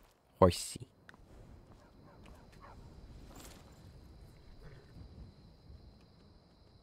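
A horse's hooves clop on stone as it walks.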